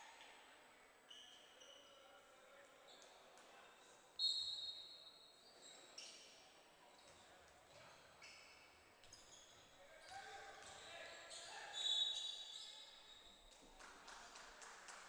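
Basketball shoes squeak sharply on a hard court in a large echoing hall.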